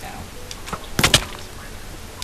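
A blow lands with a short, sharp thud.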